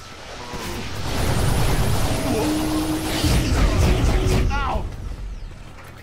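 A loud energy beam crackles and roars.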